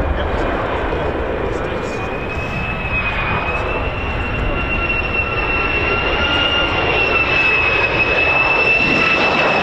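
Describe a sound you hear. A jet aircraft roars loudly with a steady high whine as it flies low overhead.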